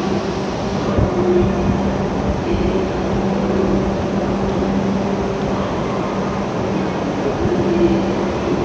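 A train rumbles as it pulls slowly away.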